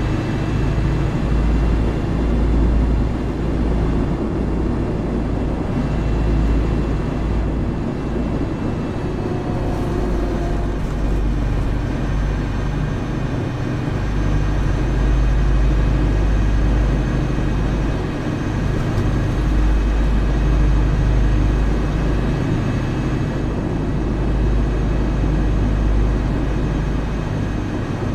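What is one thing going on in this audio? A bus engine hums and rumbles steadily while driving.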